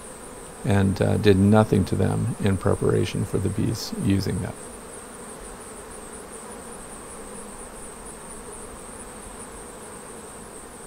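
Honeybees buzz in a steady, low drone.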